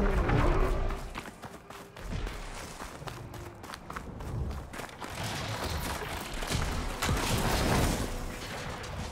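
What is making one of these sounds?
Wind blows in a snowstorm.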